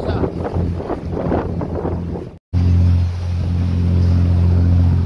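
Waves splash and rush against a moving boat's hull.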